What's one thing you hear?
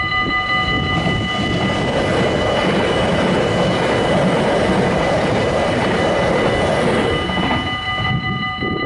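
A train rumbles past close by and fades away.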